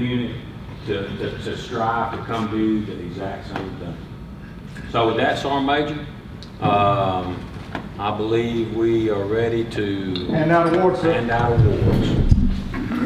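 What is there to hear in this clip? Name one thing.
An older man speaks in a formal, measured voice.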